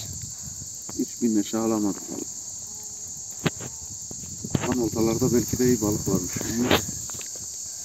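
A middle-aged man speaks calmly nearby, outdoors.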